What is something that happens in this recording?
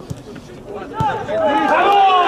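A ball is kicked hard with a thud.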